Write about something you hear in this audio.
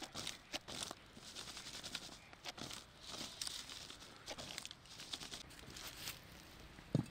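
Fried potatoes rustle and shake in a plastic basket.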